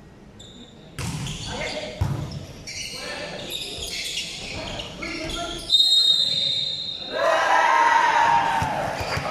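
A crowd of young women shouts and cheers in a large echoing hall.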